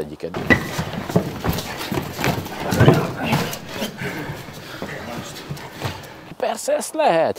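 Men scuffle and thud on a hard floor.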